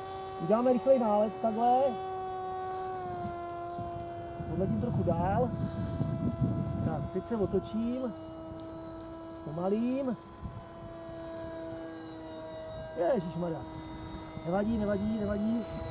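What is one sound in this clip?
A model airplane engine whines steadily overhead.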